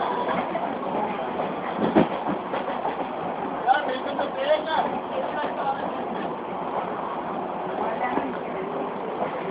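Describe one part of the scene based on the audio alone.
A train rattles and clanks steadily along the tracks.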